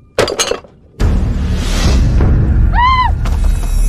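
A young woman cries out loudly in distress.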